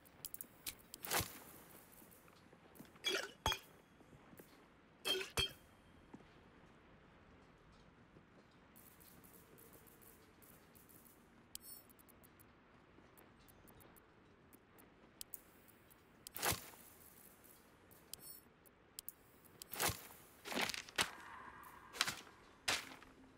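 Short interface clicks and chimes sound now and then.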